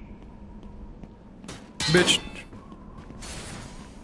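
Metal armour clinks as a knight moves.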